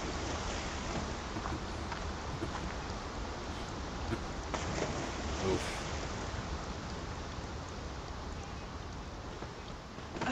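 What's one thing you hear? A river flows and splashes steadily.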